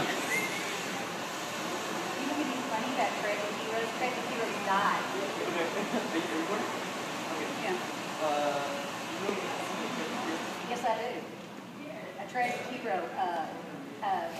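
A middle-aged woman talks calmly nearby.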